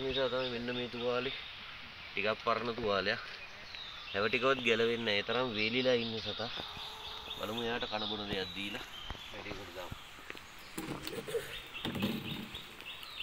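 A man talks calmly and closely.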